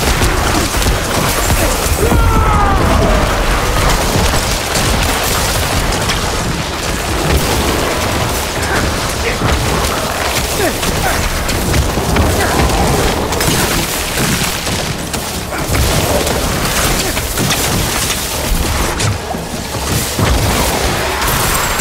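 Weapons strike monsters with rapid thuds.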